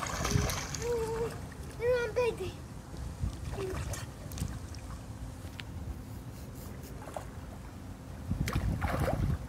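Water splashes as a child swims nearby.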